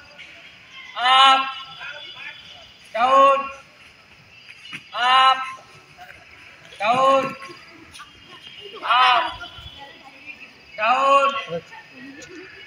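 A man shouts counting commands loudly outdoors, every two seconds.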